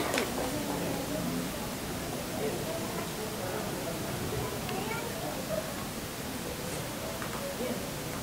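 A man speaks quietly through a microphone.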